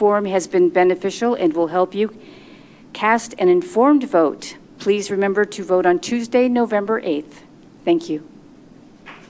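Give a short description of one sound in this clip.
An elderly woman speaks calmly into a microphone in an echoing room.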